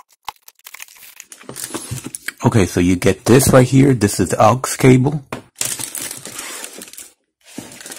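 Plastic wrapping crinkles.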